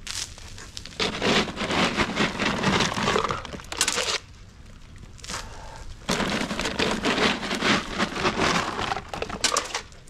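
Salt pellets scatter and patter across wet pavement.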